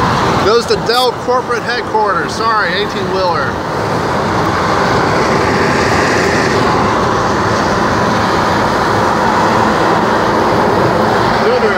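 A car drives along a busy highway with a steady rush of road noise.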